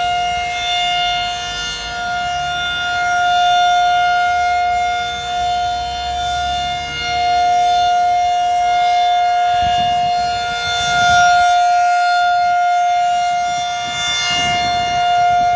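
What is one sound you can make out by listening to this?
An outdoor warning siren wails with a loud, steady tone.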